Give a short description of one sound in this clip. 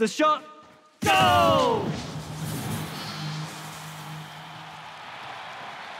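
A bright jingle sounds as points are scored.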